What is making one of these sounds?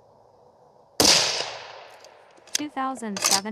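A rifle fires a single loud shot that echoes outdoors and slowly fades.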